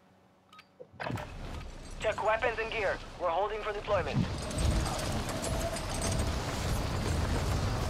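Wind rushes loudly past a skydiver in free fall.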